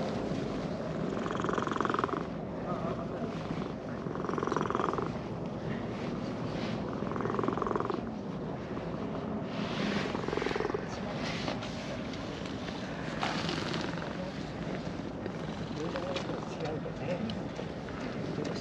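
A hand rubs and scratches a cat's fur with a soft rustle.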